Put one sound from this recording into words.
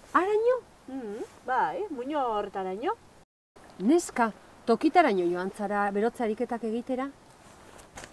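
A woman speaks with animation.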